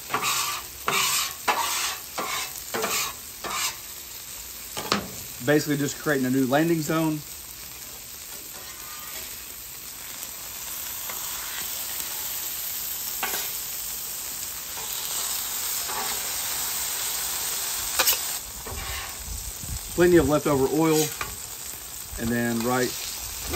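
Metal scrapers scrape and clack on a hot griddle.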